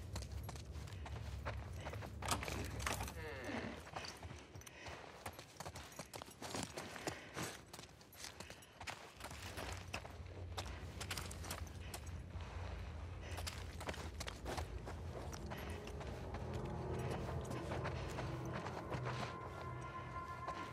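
Footsteps thud across a wooden floor.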